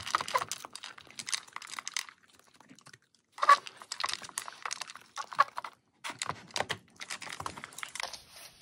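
Kibble rattles against a plastic bowl as a dog noses through it.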